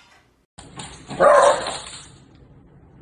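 A dog barks loudly.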